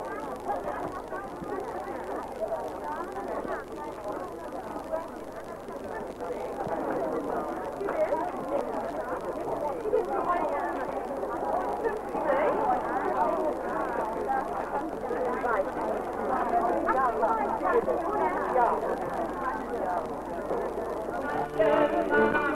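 A crowd of men and women chatters and talks all around, close by.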